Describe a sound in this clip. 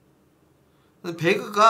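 A young man speaks briefly and quietly, close to a microphone.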